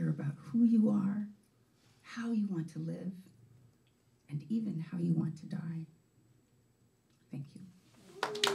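A woman speaks calmly into a microphone, heard through a loudspeaker.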